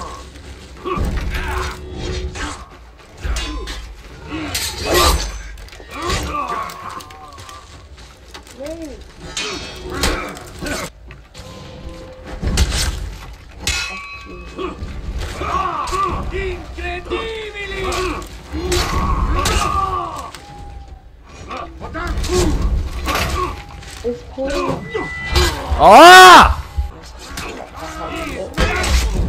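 Swords clash and clang in a fierce fight.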